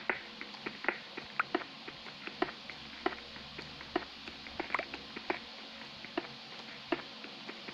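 A pickaxe repeatedly chips and cracks stone blocks in a game.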